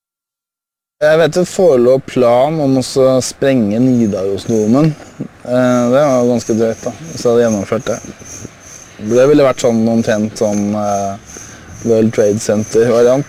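A man with a deep voice speaks calmly outdoors, close to a microphone.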